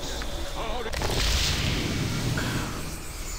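A magic spell goes off with a bright, shimmering whoosh.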